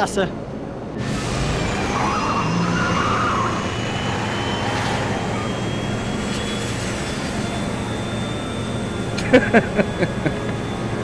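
A flying car hums with a steady whirring drone.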